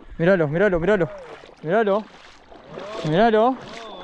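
A fish splashes at the surface of the water close by.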